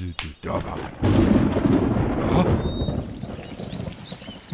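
Rain pours down steadily.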